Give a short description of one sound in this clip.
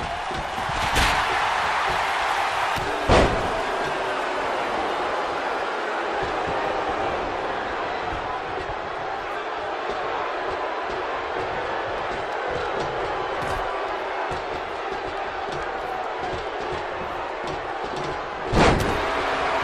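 Heavy thuds of bodies slam onto a wrestling mat.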